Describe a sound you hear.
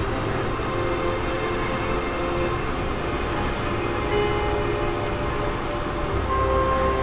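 A car drives steadily along a highway, its tyres and engine humming from inside.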